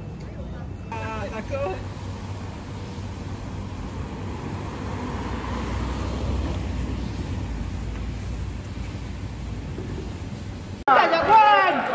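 Traffic rumbles steadily in the distance.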